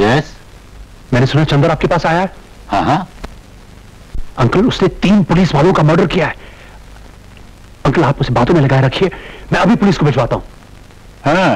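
A younger man speaks forcefully into a telephone.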